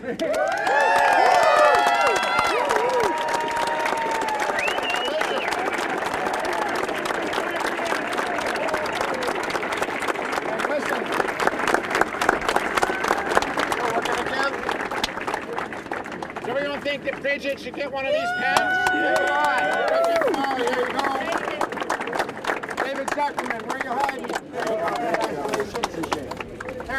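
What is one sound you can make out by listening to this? A crowd applauds and claps outdoors.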